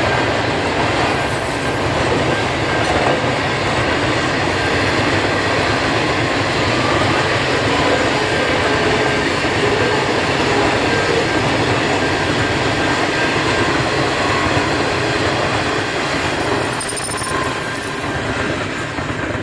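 Metal wheels squeal on the track.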